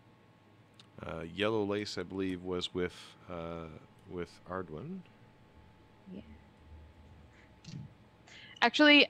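Another man answers over an online call.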